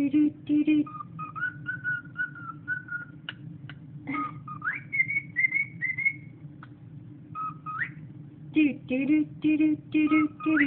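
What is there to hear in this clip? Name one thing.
A small parrot whistles a chirpy tune close by.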